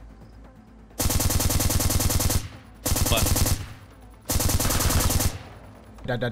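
An automatic rifle fires in three long rapid bursts.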